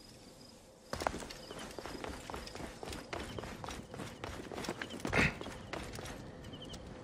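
Footsteps patter on stone as a figure runs.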